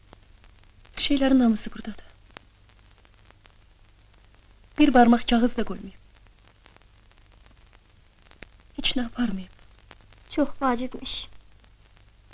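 A woman speaks in short, emotional bursts close by.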